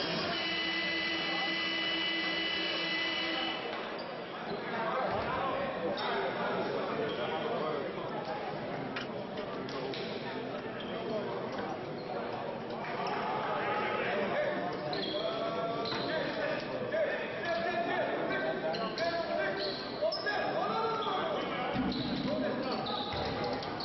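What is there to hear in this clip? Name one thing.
Spectators and players call out and chatter, echoing around the hall.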